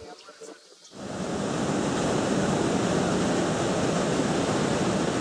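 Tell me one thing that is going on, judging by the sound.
A waterfall roars heavily and steadily.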